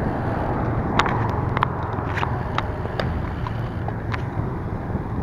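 A bicycle rattles and clicks over the road.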